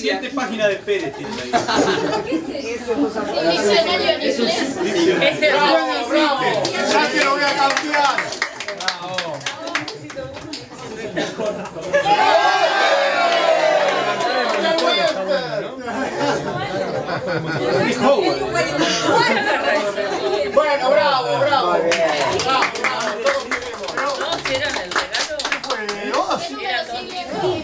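Several young people talk and chatter at once.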